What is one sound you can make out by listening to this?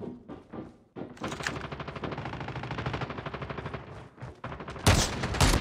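Footsteps run quickly across a hard deck.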